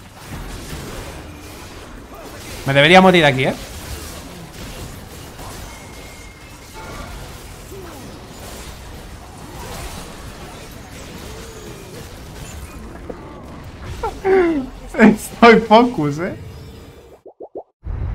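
Video game fight effects clash and whoosh.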